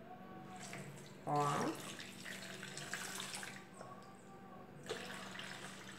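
Water pours into a plastic jug.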